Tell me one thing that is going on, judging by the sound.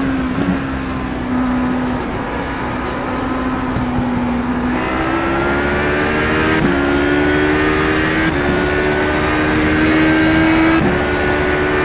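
A racing prototype engine accelerates hard through upshifts.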